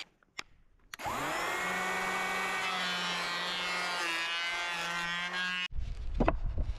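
An electric hand planer whines as it shaves wood.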